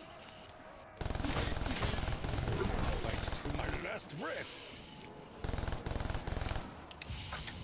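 A rapid-fire gun blasts in loud bursts.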